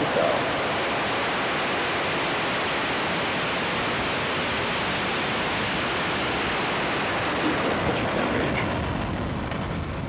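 A rocket engine roars loudly with a steady rumbling blast.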